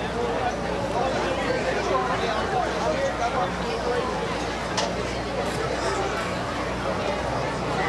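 A woman sings into a microphone over the band.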